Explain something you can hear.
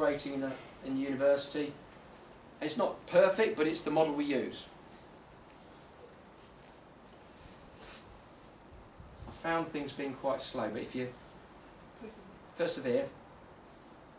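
A middle-aged man speaks calmly into a microphone in a room, with long pauses.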